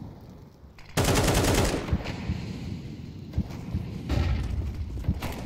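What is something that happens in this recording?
An assault rifle fires in short bursts.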